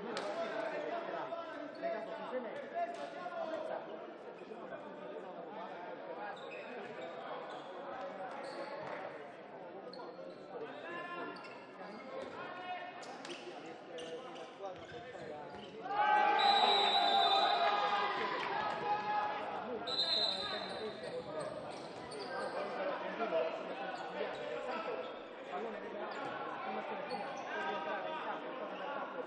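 A crowd of spectators cheers and shouts in an echoing hall.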